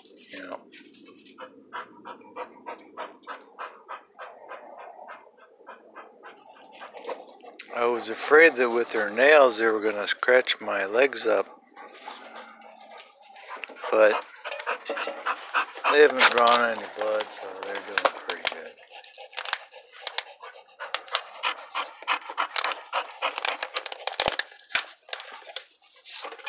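A dog pants rapidly close by.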